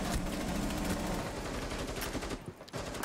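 Rifle shots fire in a fast burst.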